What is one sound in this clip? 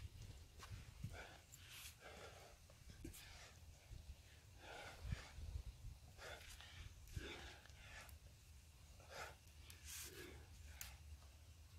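A man breathes hard with effort.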